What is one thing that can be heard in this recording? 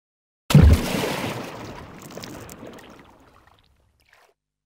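Water splashes hard and sprays, then fades away.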